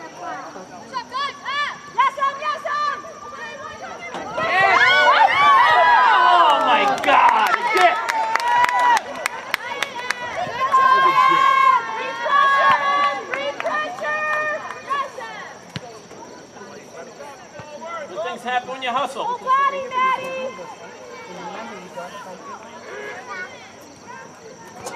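Young women players shout to each other across the field.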